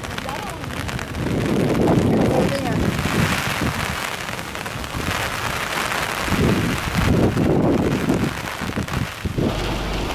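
Fast floodwater rushes past below.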